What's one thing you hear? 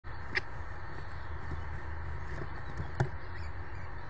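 A bird taps and pecks at prey on gravel.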